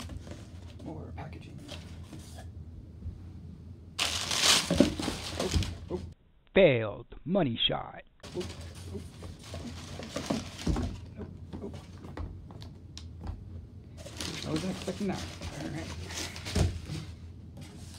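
Packing paper crinkles and rustles.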